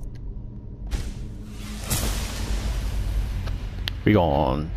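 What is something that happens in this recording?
A deep magical whoosh swells up.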